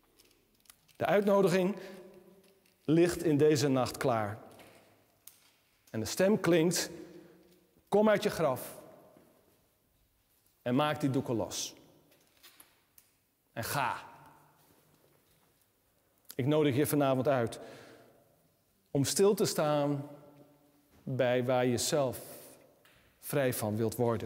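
A middle-aged man speaks calmly in short phrases with pauses, in a room with a slight echo.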